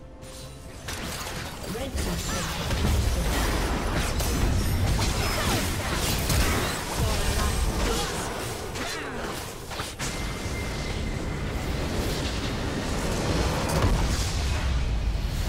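Game fight effects clash and blast with loud bursts.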